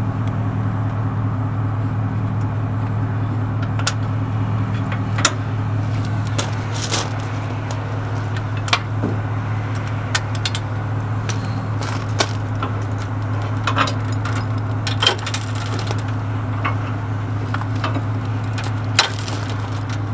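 Metal chains and hitch parts clink and clank.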